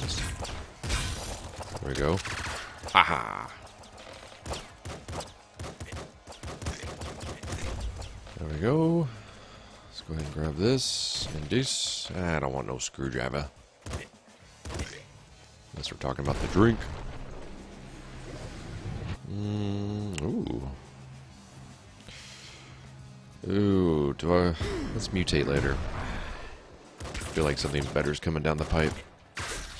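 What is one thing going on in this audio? Video game gunfire and explosions pop and crackle.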